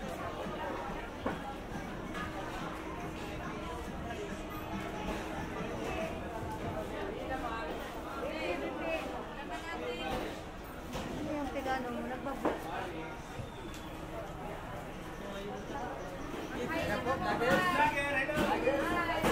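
A crowd of people chatters around a busy market.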